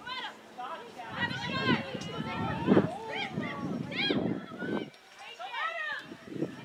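Young women shout and call to each other outdoors across an open field.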